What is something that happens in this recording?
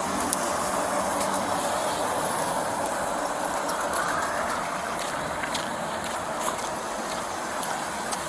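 Vehicles roll along a highway outdoors.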